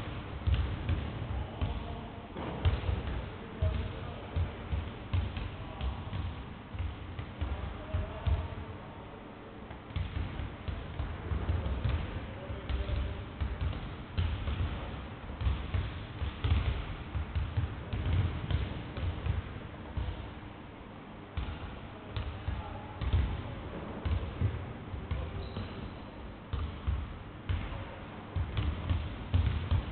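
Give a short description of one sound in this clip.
Basketballs bounce with hollow thumps on a wooden floor in a large echoing hall.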